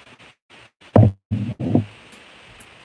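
A glass jar knocks against a hard surface.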